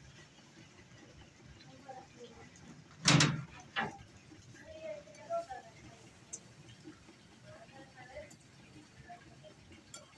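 Pigeons peck grain from a dish with soft taps.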